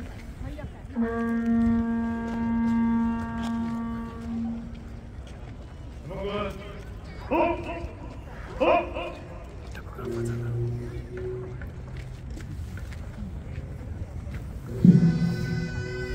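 Traditional horns blow long, steady notes.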